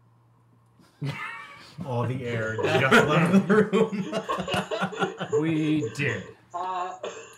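Several men laugh loudly together.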